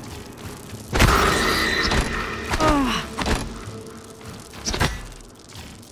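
A heavy wrench swings and strikes with a hard thud.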